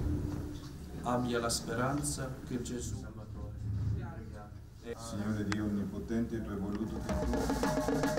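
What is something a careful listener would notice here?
A man chants a prayer in an echoing room.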